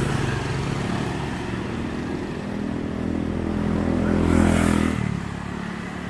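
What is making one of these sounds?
Small motorcycles ride past on the street.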